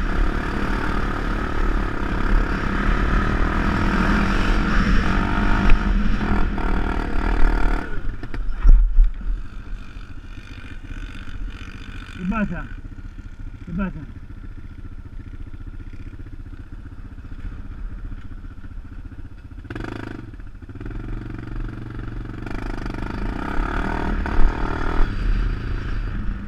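A quad bike engine hums steadily up close.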